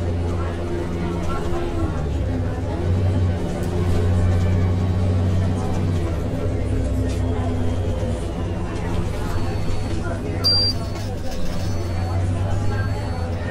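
A bus engine hums low and steady as the bus drives along.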